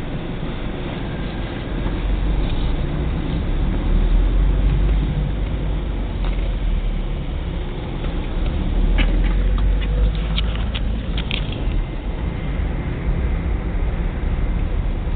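Wind buffets the microphone outdoors with a steady low rumble.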